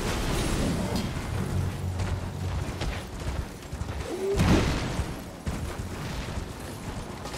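A horse gallops over grass.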